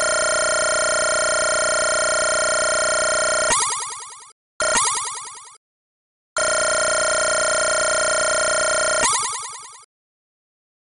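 A steady electronic tone buzzes and ends in a fading chime.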